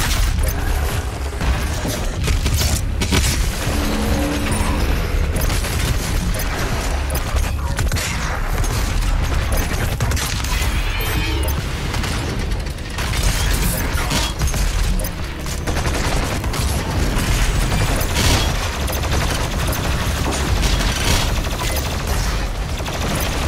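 Guns fire rapidly in loud bursts.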